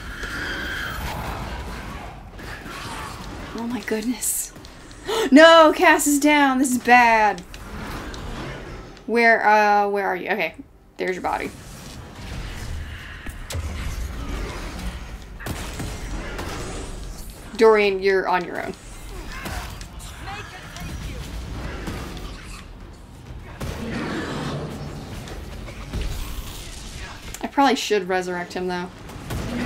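Magic blasts crackle and boom in a fierce fight.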